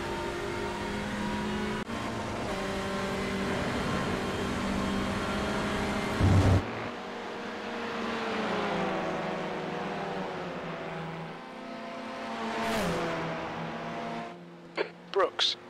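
A racing car engine roars at high revs, its pitch rising and dropping as it changes gear.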